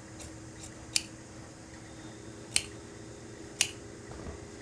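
Metal scissors clack down onto a table.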